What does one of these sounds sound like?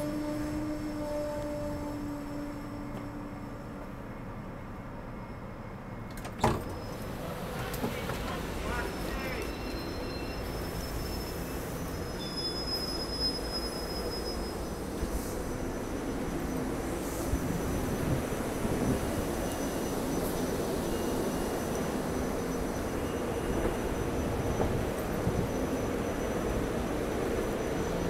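A stopped train hums steadily nearby.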